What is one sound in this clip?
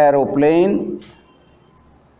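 An elderly man speaks loudly and with emphasis, close by.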